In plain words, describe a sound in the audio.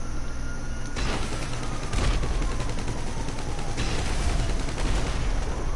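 A gun fires sharp shots nearby.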